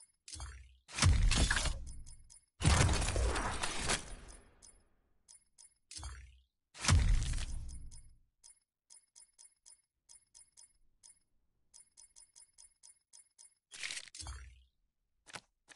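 Deep whooshing swells sound and fade out as menu pages open.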